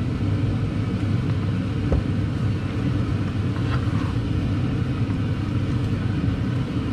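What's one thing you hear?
Vegetables sizzle and bubble in a hot pan.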